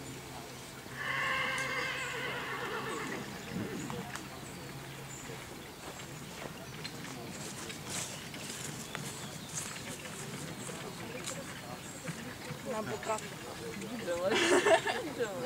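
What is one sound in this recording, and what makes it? A horse's hooves thud on grass at a trot.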